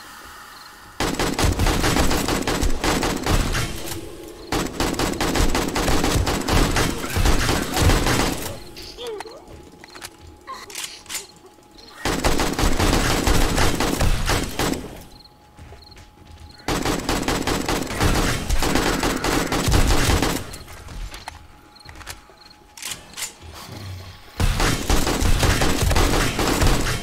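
Automatic gunfire rattles in long, rapid bursts.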